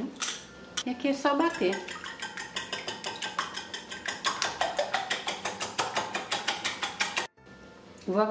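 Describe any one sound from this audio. A whisk beats eggs rapidly against a glass bowl.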